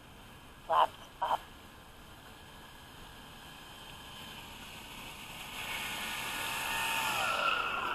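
Floats splash and hiss through the water.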